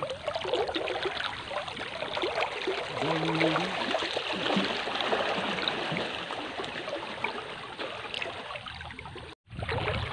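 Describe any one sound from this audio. Water splashes around a man wading in a river.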